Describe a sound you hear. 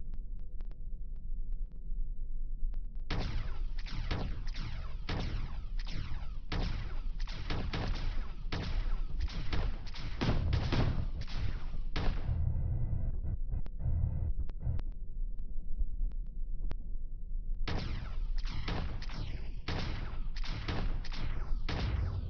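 A spacecraft engine rumbles low and steadily.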